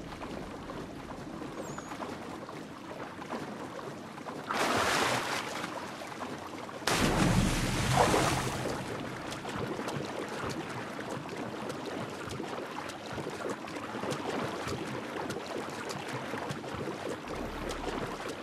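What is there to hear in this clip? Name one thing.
Water splashes steadily as a body swims through it.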